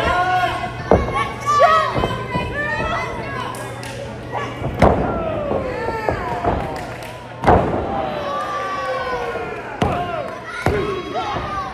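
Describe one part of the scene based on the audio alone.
Bodies slam loudly onto a wrestling ring mat.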